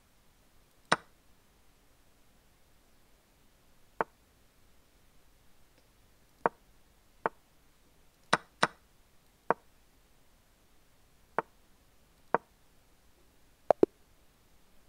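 Short wooden clicks of chess pieces being placed sound at irregular intervals.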